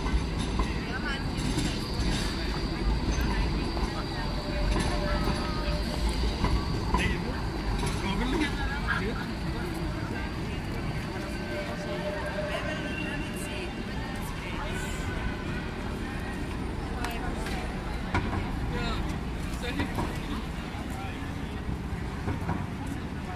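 A busy crowd of people chatters in a square outdoors.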